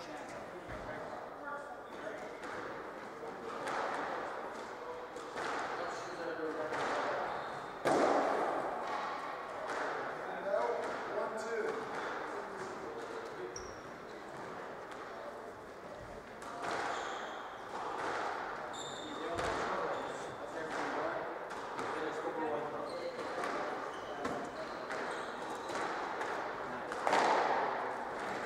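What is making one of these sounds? Shoes squeak and scuff on a wooden floor.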